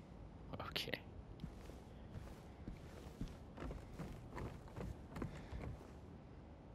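Footsteps tread slowly on a creaking wooden floor.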